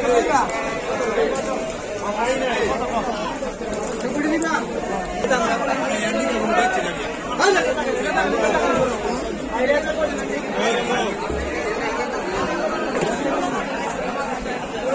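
Many men and women chatter and call out nearby, outdoors.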